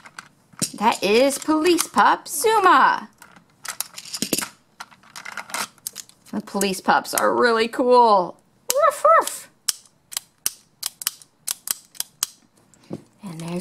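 Plastic toy pieces click and clack.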